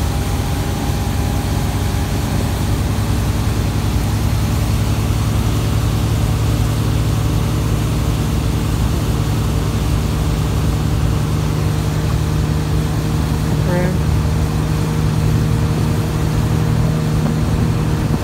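A boat engine drones steadily at speed.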